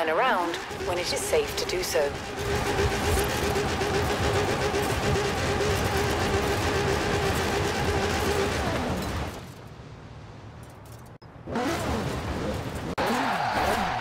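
A sports car engine roars and revs hard.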